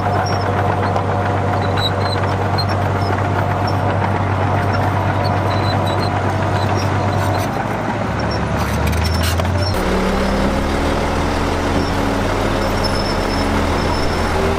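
A bulldozer engine rumbles steadily, changing pitch as it works.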